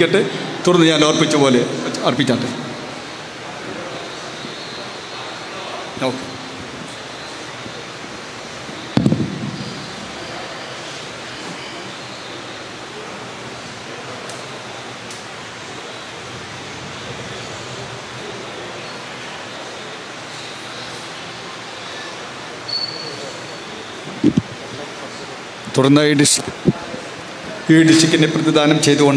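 A man speaks through a loudspeaker in a large echoing room.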